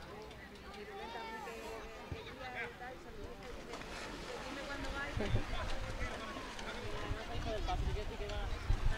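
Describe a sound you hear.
Children shout and chatter outdoors.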